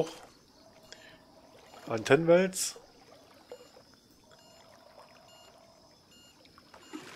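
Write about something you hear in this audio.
Water laps gently.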